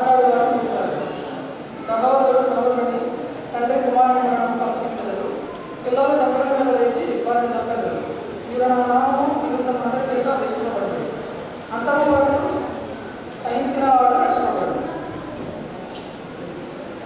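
A man sings into a microphone in a reverberant room.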